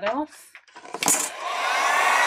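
A heat gun clicks on.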